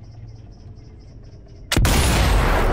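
A rifle fires a single loud, booming shot.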